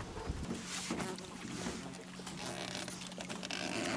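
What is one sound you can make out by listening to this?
A dog paddles and splashes in water.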